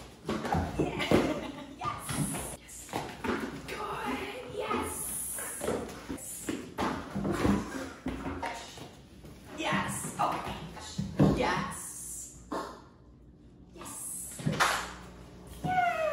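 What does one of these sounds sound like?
A dog's paws thump and scrabble on the floor.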